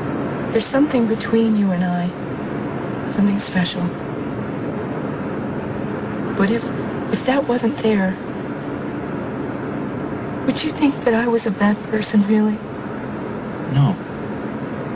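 A woman speaks tensely, close by.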